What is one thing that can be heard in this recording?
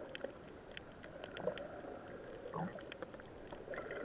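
A snorkeler's fins kick through the water nearby.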